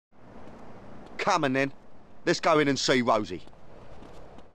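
A man speaks casually.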